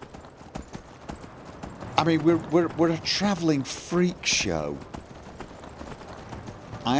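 Horse hooves clop steadily on stone and snow.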